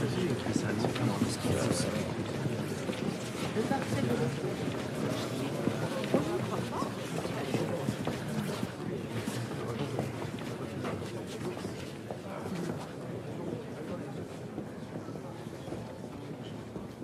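A crowd of men and women chatters in a busy indoor room, the murmur slowly growing quieter.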